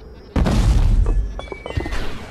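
A loud blast booms and rumbles, then fades.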